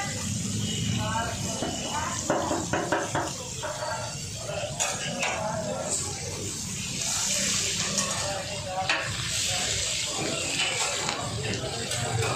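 Fish sizzles loudly in hot oil on a griddle.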